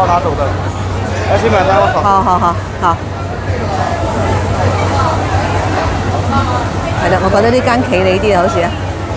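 Food sizzles and hisses on a hot grill.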